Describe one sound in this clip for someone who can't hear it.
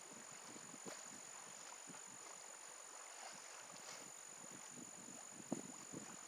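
Grass rustles as a man crouches in it.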